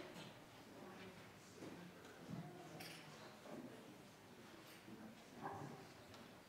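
A crowd of people chat and murmur in a large echoing hall.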